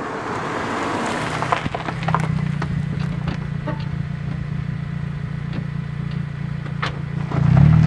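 Tyres crunch and crackle on loose gravel.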